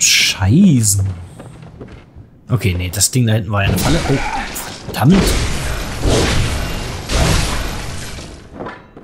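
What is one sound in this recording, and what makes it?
Blades slash and strike in a fight.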